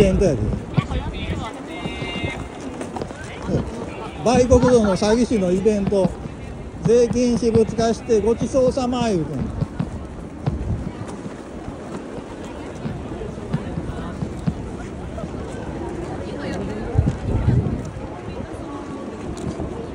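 A crowd murmurs and walks outdoors on a busy street.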